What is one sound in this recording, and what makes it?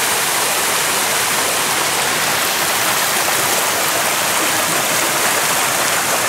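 A stream rushes and gurgles over stones close by.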